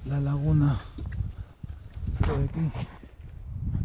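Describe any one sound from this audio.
A man speaks close to the microphone.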